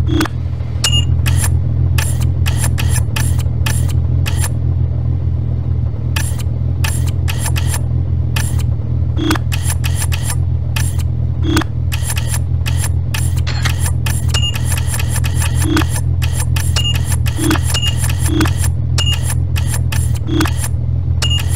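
Short electronic clicks and beeps sound quickly, one after another.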